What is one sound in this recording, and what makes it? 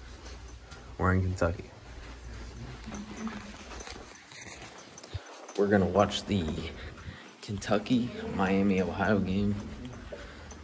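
A teenage boy talks casually close by.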